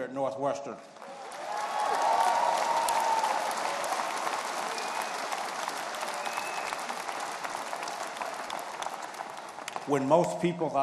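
A large crowd applauds and cheers in a big echoing arena.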